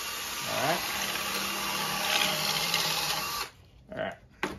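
A power drill whirs steadily, then stops.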